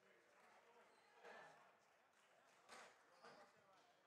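Players clap their hands.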